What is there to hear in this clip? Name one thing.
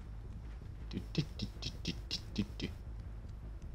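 Footsteps run quickly over gravel.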